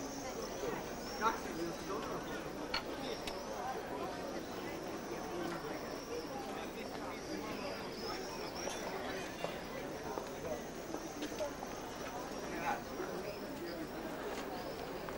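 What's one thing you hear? A crowd of people chatters in a busy outdoor square.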